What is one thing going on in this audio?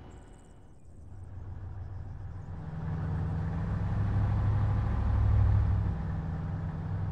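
An armoured truck's engine rumbles low and grows louder.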